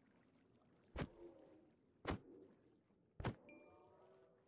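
A sword strikes a creature with sharp, heavy hits.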